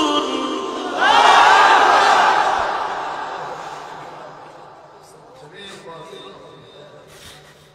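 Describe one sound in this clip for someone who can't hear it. A man speaks with emotion through a microphone, in an echoing space.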